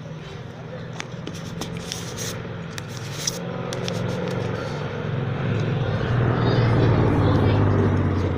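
A plastic container crinkles and rustles in a hand.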